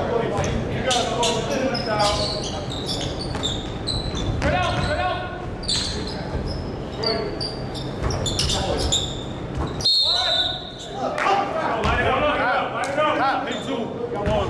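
Sneakers squeak sharply on a wooden court, echoing in a large hall.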